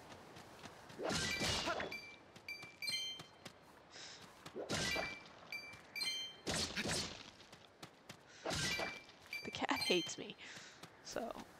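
A sword swishes and strikes with bright chimes.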